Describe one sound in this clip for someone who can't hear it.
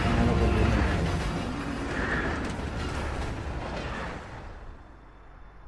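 A steam locomotive chuffs and hisses.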